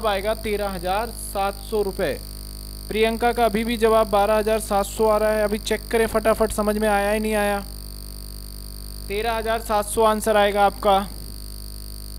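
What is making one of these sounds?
A man speaks into a close microphone in a calm, explaining tone.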